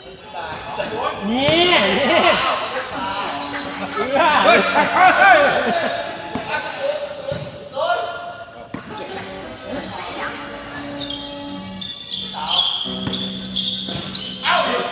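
Sneakers squeak sharply on a hard court floor in an echoing hall.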